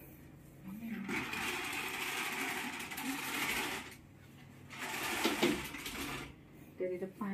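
A curtain slides along its rail.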